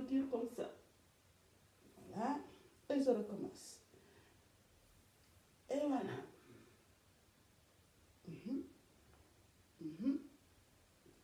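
A woman speaks in short bursts nearby.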